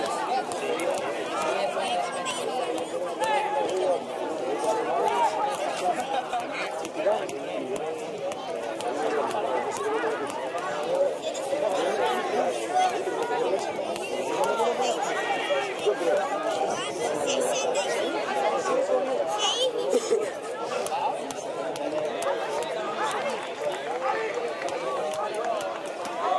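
A crowd of people chatters and calls out nearby, outdoors.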